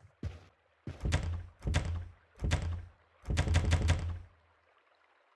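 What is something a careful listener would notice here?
A door handle rattles against a locked door.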